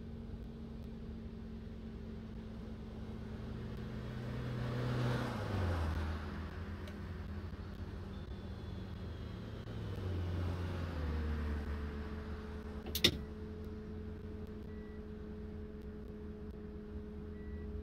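A bus engine hums steadily and changes pitch as gears shift.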